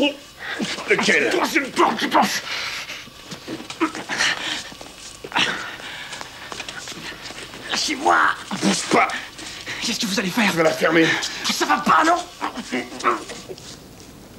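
A woman gasps and cries out while struggling.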